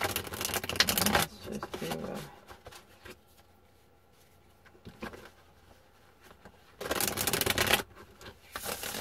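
Hands rub and rustle a fabric pouch up close.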